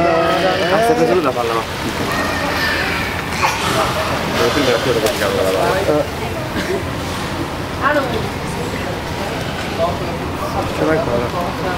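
A beluga whale whistles and chirps underwater.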